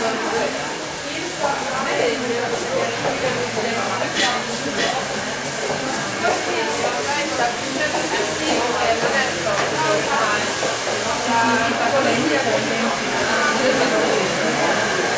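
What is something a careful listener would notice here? A crowd of young men and women chatters loudly indoors.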